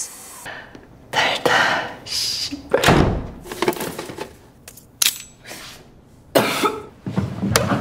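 A young woman laughs and speaks with excitement, heard from a playback.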